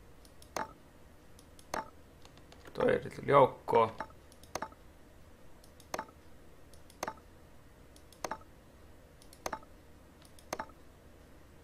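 Soft clicks tick at a steady pace.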